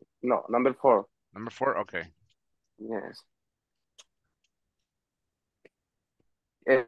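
A man speaks calmly through an online call microphone, in short phrases with pauses.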